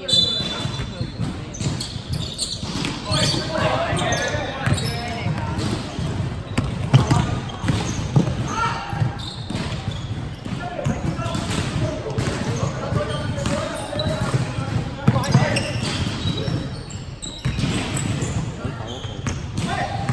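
Young players shout and call out to each other.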